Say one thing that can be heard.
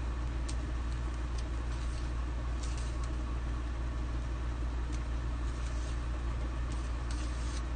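Paper rustles under a woman's hands.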